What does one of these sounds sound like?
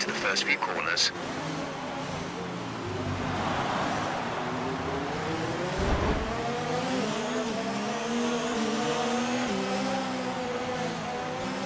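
A racing car engine revs high and shifts gears.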